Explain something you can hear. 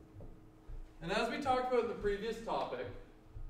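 A man speaks calmly, a little distant in an echoing room.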